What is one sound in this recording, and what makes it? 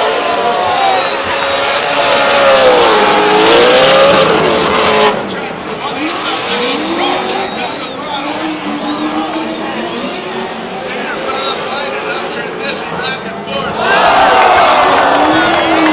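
Tyres screech loudly as the cars slide sideways.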